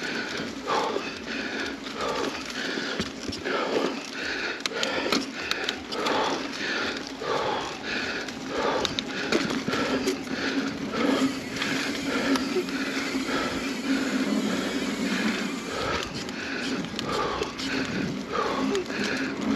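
A bicycle rattles over bumps on the trail.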